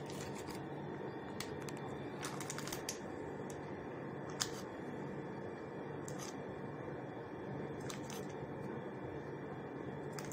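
Fingers press soft biscuits into a sauce with faint wet clicks.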